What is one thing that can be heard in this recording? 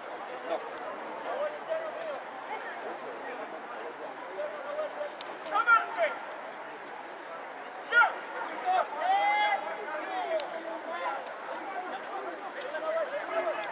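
Men shout loudly outdoors, calling to one another.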